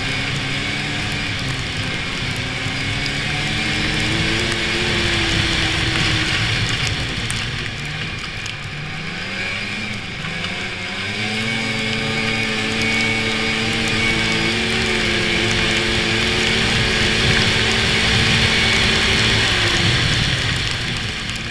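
Snow hisses under the snowmobile's track.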